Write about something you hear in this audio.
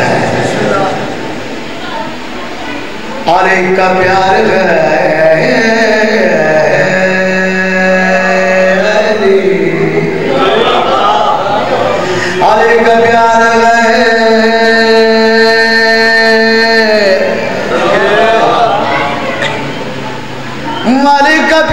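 A man chants a long, drawn-out lament loudly through a microphone, in a reverberant hall.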